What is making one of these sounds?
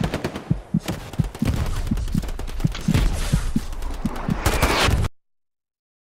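A rifle fires rapid shots close by.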